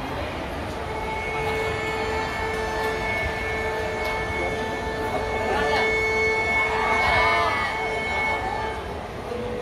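A small orchestra plays on a stage in a large echoing hall.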